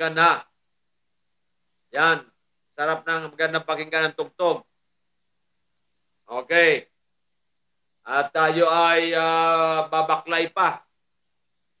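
An older man speaks calmly and closely into a microphone, in short bursts with pauses.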